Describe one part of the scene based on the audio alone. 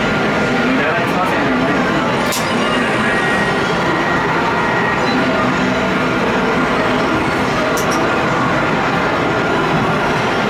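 A game machine plays loud electronic music.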